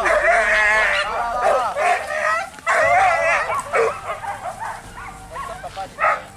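Men shout excitedly close by outdoors.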